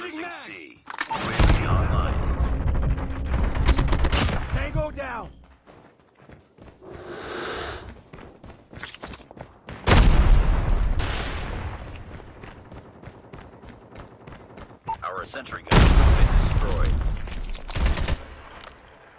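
Loud gunfire bursts out in short volleys.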